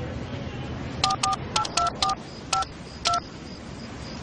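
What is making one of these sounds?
Telephone keys beep as a number is dialed.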